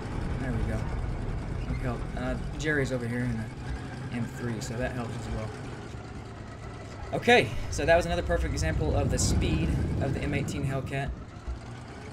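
A tank engine rumbles and clanks as the tank drives.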